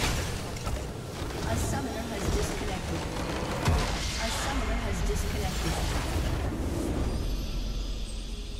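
Video game spells crackle and boom in a busy battle.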